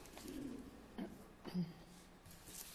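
Paper rustles as a man handles a sheet.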